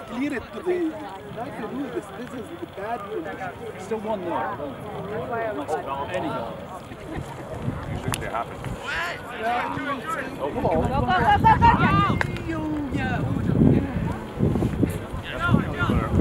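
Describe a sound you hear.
Young men shout to each other outdoors.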